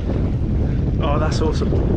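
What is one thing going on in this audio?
A middle-aged man speaks briefly nearby.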